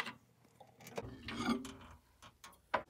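A ceramic mug clinks on a glass plate.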